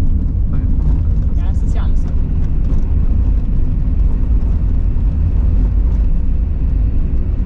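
Tyres roll and crunch over packed snow.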